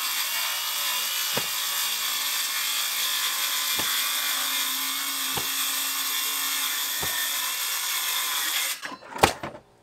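A power saw whines loudly as it cuts through sheet metal, then stops.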